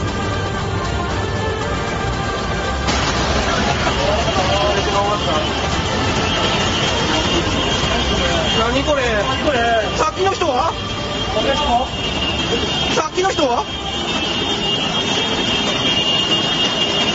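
Floodwater rushes and roars loudly through the streets.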